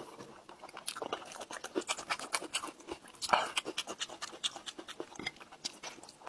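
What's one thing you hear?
A man chews food wetly with smacking sounds, close to the microphone.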